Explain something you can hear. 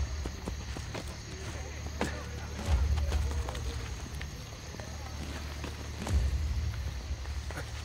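Hands scrape and grip on stone while climbing.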